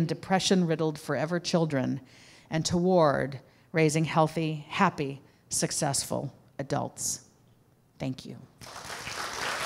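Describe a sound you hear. A woman speaks calmly into a microphone.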